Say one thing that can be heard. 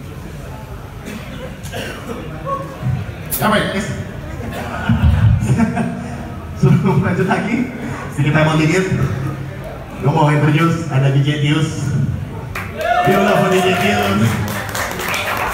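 A rock band plays loudly with drums, bass and electric guitars.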